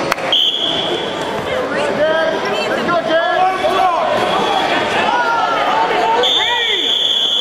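Spectators shout encouragement in an echoing gym.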